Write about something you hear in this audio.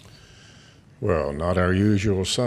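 A man sings loudly through a microphone in a large echoing hall.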